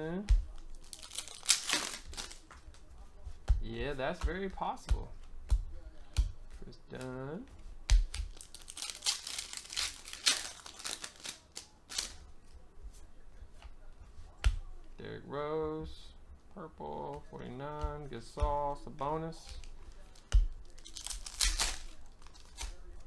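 Foil trading card wrappers crinkle in hands.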